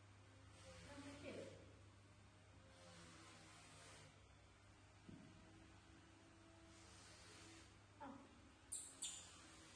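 A woman whimpers and sobs softly nearby.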